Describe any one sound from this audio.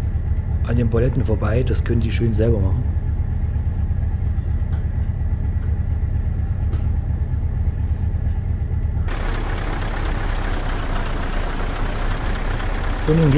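A truck engine rumbles steadily at idle.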